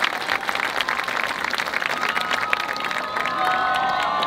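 A marching band drums in an open stadium.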